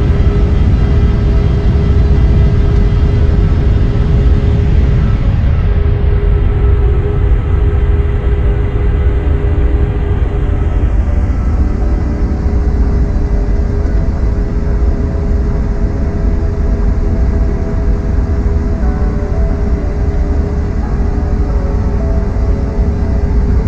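Jet engines hum and rumble steadily.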